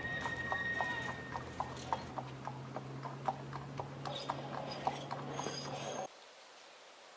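A horse's hooves clop on a paved street.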